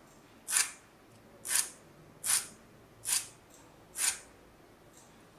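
A small metal file rasps against metal in quick, short strokes.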